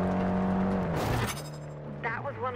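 A sign smashes with a loud crash against a car.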